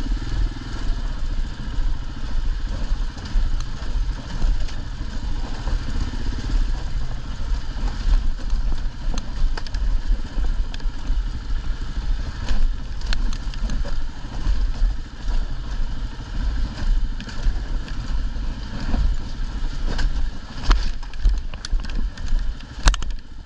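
A motorcycle engine rumbles low and steady.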